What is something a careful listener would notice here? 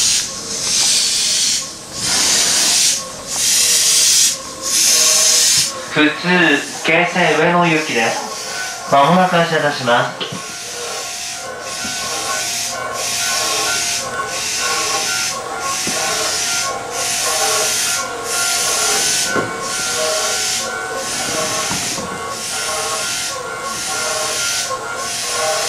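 A stopped train hums steadily.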